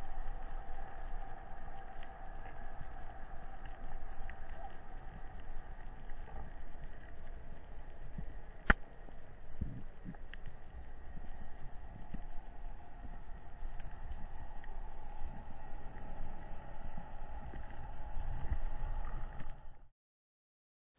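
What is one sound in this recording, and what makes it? Water rushes and crackles softly underwater.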